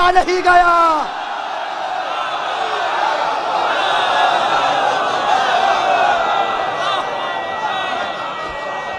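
A large crowd cheers and shouts in praise in an echoing hall.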